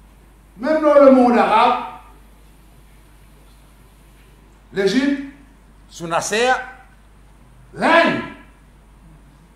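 An elderly man speaks slowly and with emphasis into a microphone, in short phrases with pauses.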